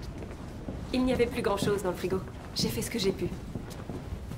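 A young woman speaks calmly and softly.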